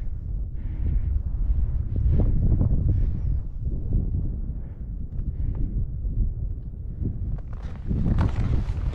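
Wind gusts outdoors across an open snowfield.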